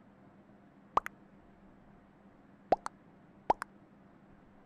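Short chat notification blips pop up a few times.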